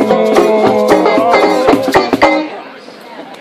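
A small band plays acoustic guitars and bass outdoors.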